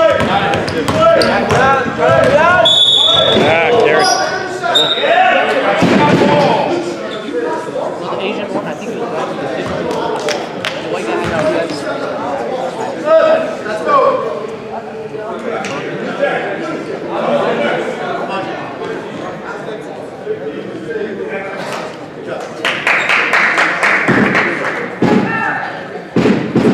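A crowd of spectators cheers and talks in a large echoing gym.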